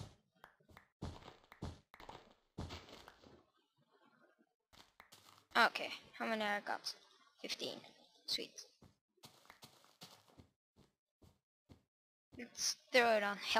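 Footsteps thud softly on grass and snow.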